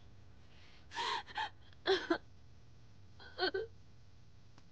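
A young woman sobs and cries close by.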